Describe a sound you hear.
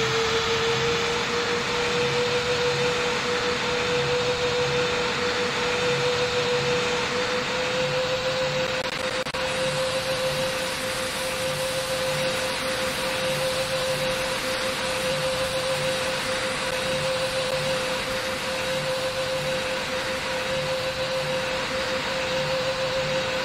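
Jet engines hum with a steady, high whine.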